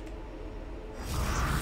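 A rushing whoosh swells suddenly.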